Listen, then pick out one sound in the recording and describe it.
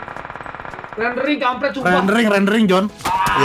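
A young man speaks with animation, in a sing-song voice, close to a microphone.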